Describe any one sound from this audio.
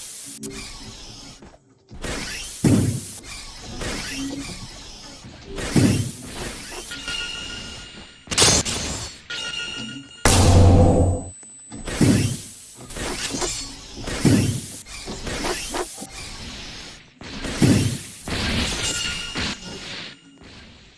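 Gas jets hiss in bursts.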